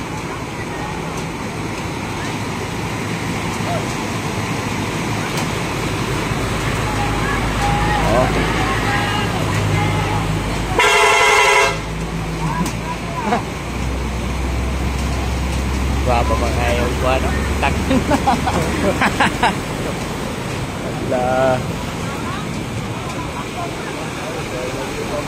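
Floodwater rushes and splashes against the wheels.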